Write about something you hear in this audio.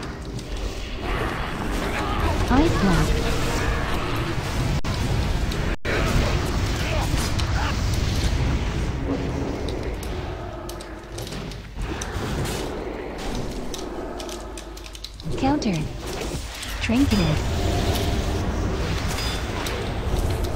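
Spell and combat effects from a video game burst and crackle.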